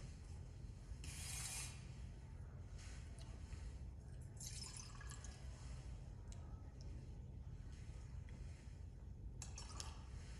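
Water is poured into a cup.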